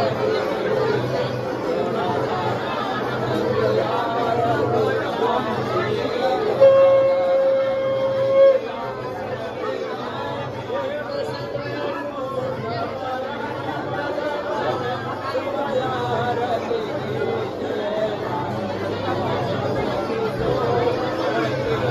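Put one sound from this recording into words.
A crowd of men and women chatters and murmurs nearby in an echoing room.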